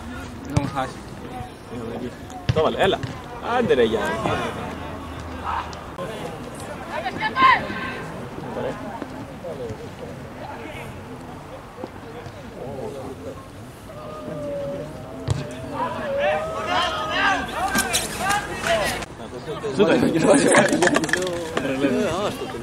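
Men shout in the distance across an open field.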